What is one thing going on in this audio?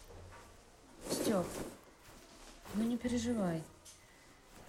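A teenage boy speaks quietly.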